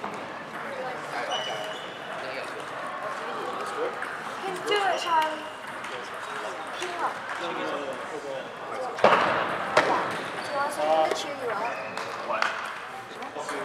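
Several young men talk and call out nearby.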